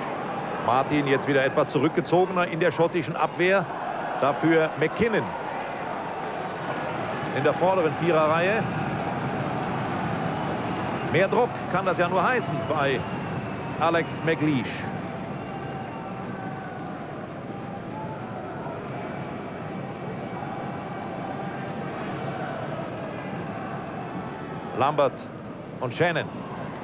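A large stadium crowd murmurs and chants steadily, outdoors.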